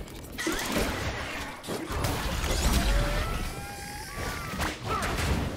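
Video game spell effects whoosh and crash in quick bursts during a fight.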